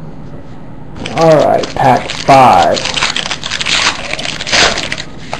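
Foil wrappers crinkle and rustle close by.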